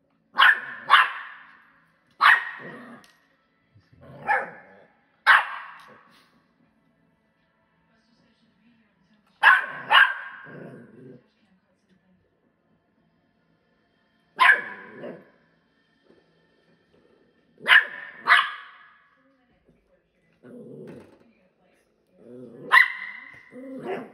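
A door stop spring twangs with a ringing boing, again and again.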